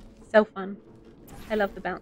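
A portal gun fires with a zapping sound.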